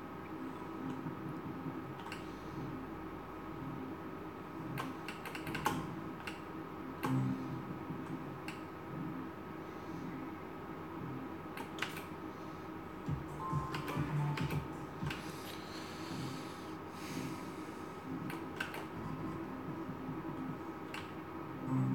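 Reels on a slot machine click and clack to a stop.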